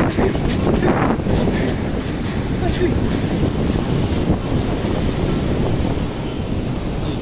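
Wind blows loudly outdoors.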